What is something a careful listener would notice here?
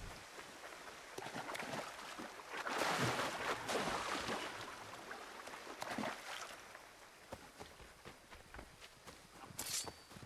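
Footsteps rustle through grass and brush.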